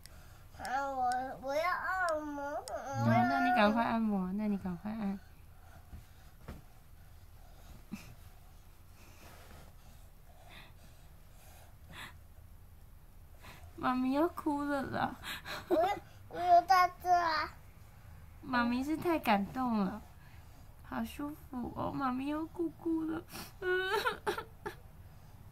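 A young child talks close by in short bursts, with pauses.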